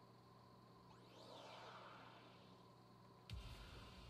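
A shimmering magical whoosh from a video game swells and fades.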